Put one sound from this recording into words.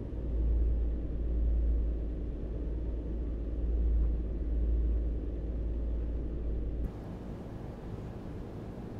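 A heavy truck engine rumbles steadily with a low drone.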